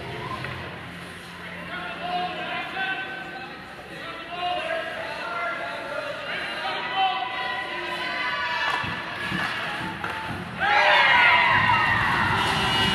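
Skates scrape across the ice.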